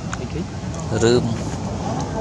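A monkey gives a short high squeal.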